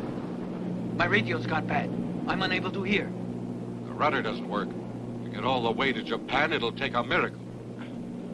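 A man speaks tensely over the engine noise.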